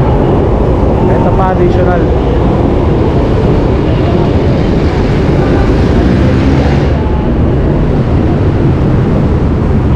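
A motorcycle engine idles nearby.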